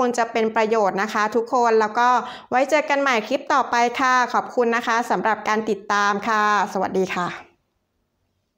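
A young woman speaks calmly and warmly, close to a microphone.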